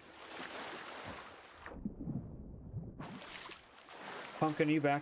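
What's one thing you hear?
Water splashes and rushes as a swimmer surfaces.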